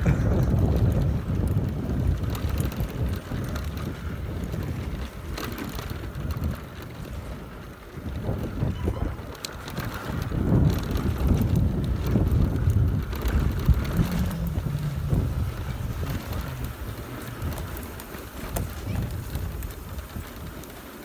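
Wind rushes loudly past the microphone.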